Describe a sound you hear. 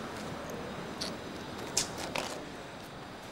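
Footsteps walk away on a hard floor.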